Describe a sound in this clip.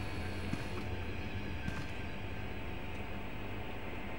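A wooden door creaks as it swings shut.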